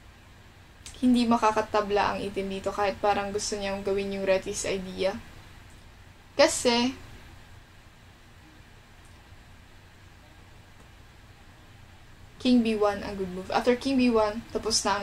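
A young woman talks calmly into a close microphone.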